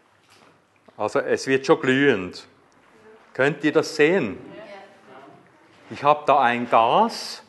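A middle-aged man speaks calmly into a clip-on microphone, close by.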